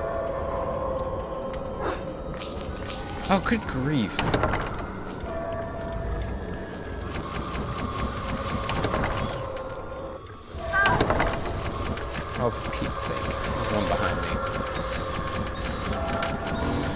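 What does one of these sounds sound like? Eerie music with sustained tones plays throughout.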